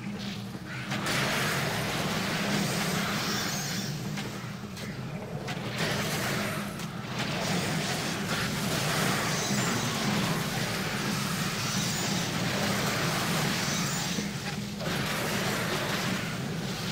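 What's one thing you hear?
Swords clash and magic spells crackle in a fast fight.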